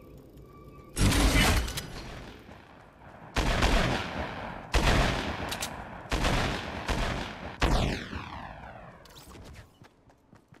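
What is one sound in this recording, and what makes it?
Loud gunshots boom in bursts, with ringing echoes.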